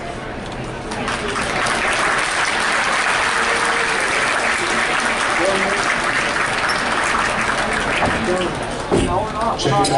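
A crowd claps and cheers in a large echoing gym.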